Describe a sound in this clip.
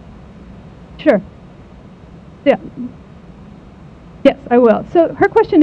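A woman speaks through a microphone with animation, in short bursts.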